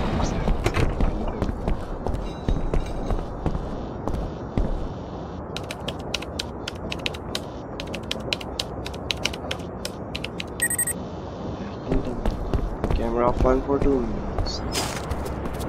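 Footsteps tap steadily on a wooden floor.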